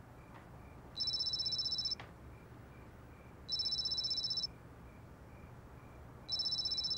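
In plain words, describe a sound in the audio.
A mobile phone rings with repeated electronic beeps.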